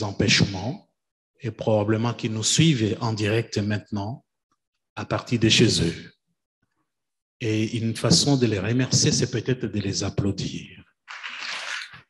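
A man speaks clearly through a microphone in an echoing hall.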